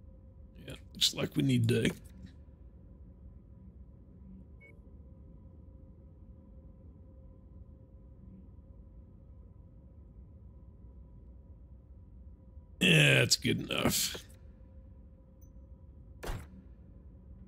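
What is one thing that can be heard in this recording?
Electronic menu sounds whoosh and chime in short bursts.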